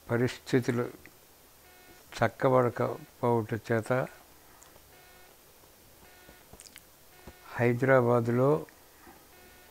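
An elderly man speaks slowly and weakly into a microphone close by, with long pauses.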